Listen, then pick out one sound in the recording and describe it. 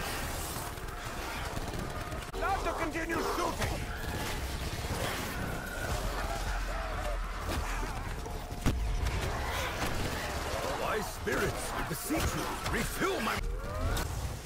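An electric weapon crackles and buzzes.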